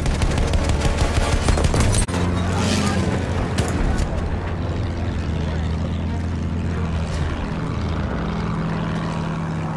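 A propeller plane's engine drones steadily.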